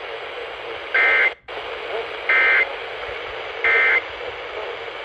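A radio beeps sharply as buttons are pressed.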